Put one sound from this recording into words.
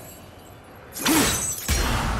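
A flaming blade swings with a sudden roaring whoosh.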